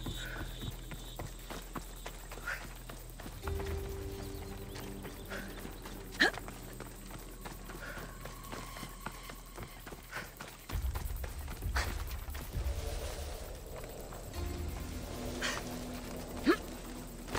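Footsteps run quickly over dirt and gravel.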